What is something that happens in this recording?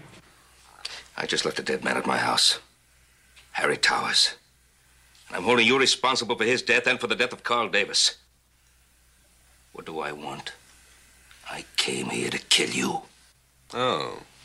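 A man with a deep voice answers sternly.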